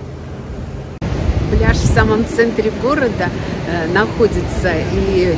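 A middle-aged woman speaks calmly and close by, outdoors in a light wind.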